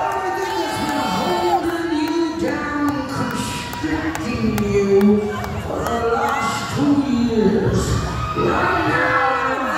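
A voice sings loudly through loudspeakers.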